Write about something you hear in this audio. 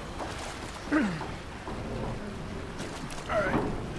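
Water splashes and gushes.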